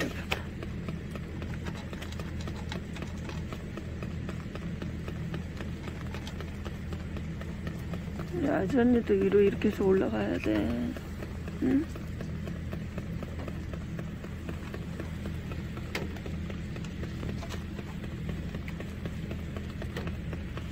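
A cat chews and crunches dry food from a foil tray.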